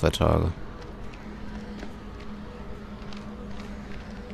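Footsteps crunch softly on rocky ground.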